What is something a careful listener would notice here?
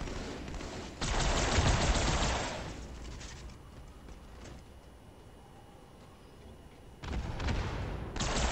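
Rapid gunfire bursts loudly in a video game.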